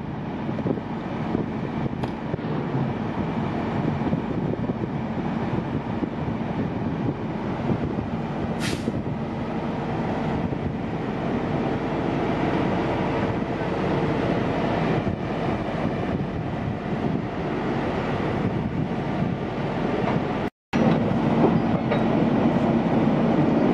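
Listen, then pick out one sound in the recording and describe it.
A heavy truck engine idles nearby with a steady rumble.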